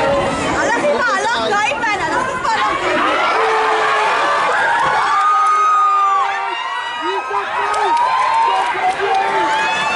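A crowd of spectators cheers and shouts from the sideline.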